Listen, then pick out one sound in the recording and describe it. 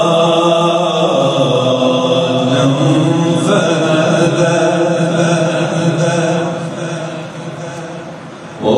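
A man chants a long, drawn-out recitation into a microphone, heard through loudspeakers with echo.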